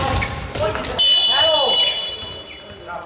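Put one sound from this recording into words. A referee's whistle blows one short, shrill blast.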